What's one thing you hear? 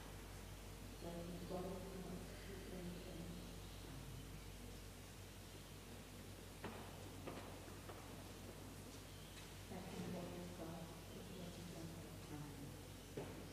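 An older man speaks softly and briefly, close by.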